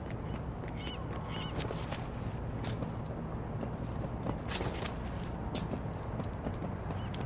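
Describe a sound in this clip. Footsteps run and thud on metal.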